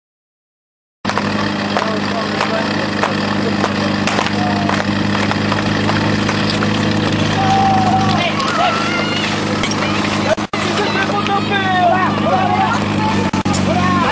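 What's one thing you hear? A pump engine roars steadily close by.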